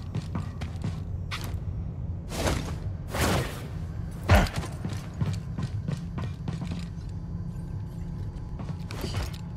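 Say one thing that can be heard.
Footsteps clatter quickly on a metal floor.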